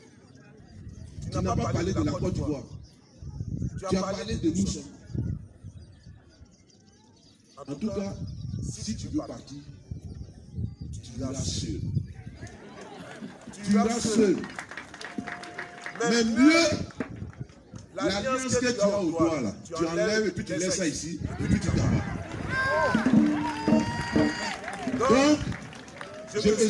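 A man speaks with animation into a microphone, heard outdoors through a loudspeaker.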